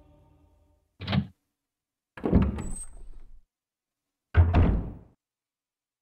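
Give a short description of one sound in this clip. A heavy wooden door creaks open slowly.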